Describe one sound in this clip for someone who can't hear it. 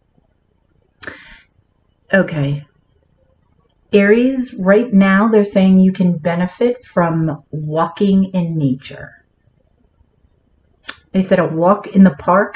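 A woman speaks calmly, close by, in short bursts with pauses.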